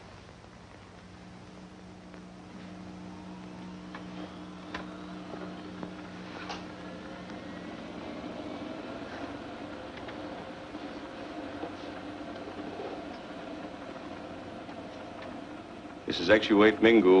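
A radio whines and crackles with static as its dial is tuned.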